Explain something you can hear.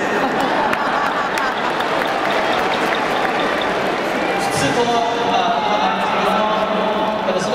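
A young man speaks through loudspeakers in a large echoing stadium.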